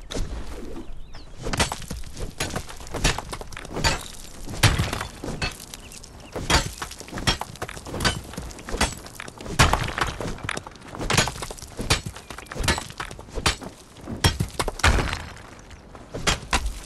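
A pickaxe strikes rock with sharp, repeated cracks.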